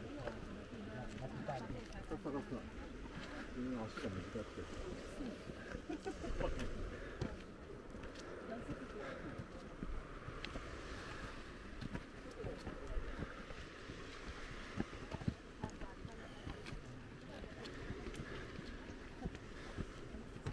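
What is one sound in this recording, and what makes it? Wind blows outdoors, rustling dry grass.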